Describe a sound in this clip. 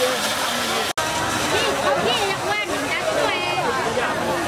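A crowd of men and women chatter busily all around outdoors.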